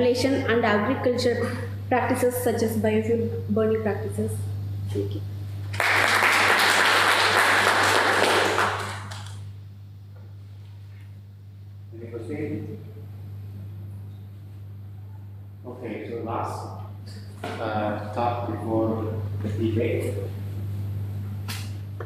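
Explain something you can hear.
A man speaks through a microphone in a room with some echo.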